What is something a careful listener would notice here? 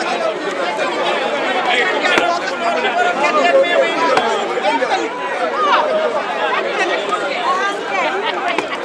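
A crowd of men and women chatter all around outdoors.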